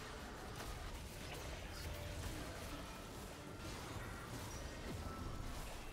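Game characters clash in battle with magic blasts and hits.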